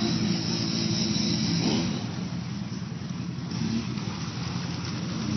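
Muddy water splashes and churns under an off-road vehicle's tyres.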